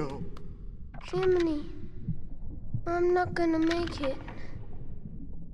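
A boy speaks weakly and sadly.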